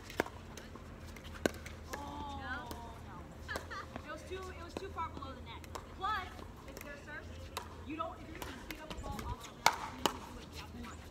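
Paddles strike a plastic ball with sharp pops, back and forth.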